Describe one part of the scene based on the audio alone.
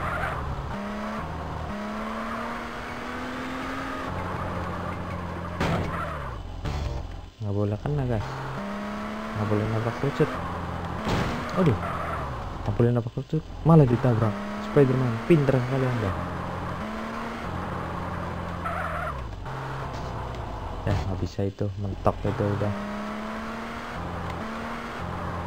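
Tyres screech as a car slides.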